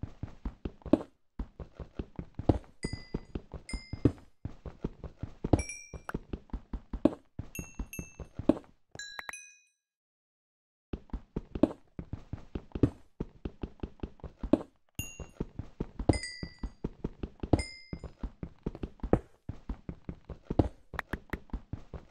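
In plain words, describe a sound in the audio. A pickaxe chips at stone in quick, steady taps.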